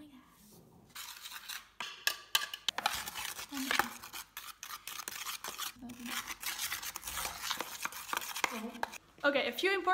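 A spoon scrapes and squelches through thick goo in a plastic tub.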